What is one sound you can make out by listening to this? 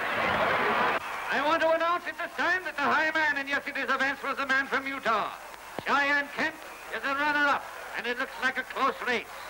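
A man shouts through a megaphone with animation.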